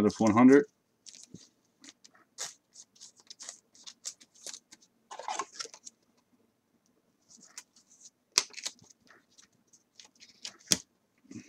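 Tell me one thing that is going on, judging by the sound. A plastic card sleeve crinkles and rustles in handling.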